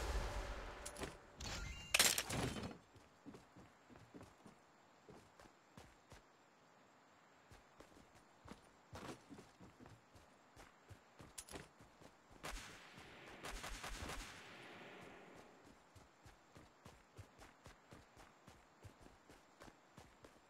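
Footsteps tread quickly on a hard floor.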